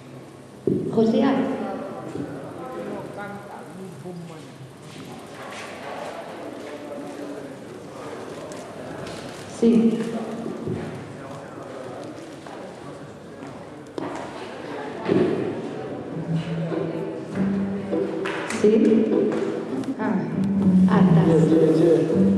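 A young woman speaks into a microphone through loudspeakers, echoing in a large hall.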